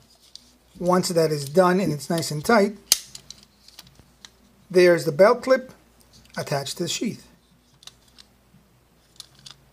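A stiff plastic knife sheath clicks and rattles as it is handled.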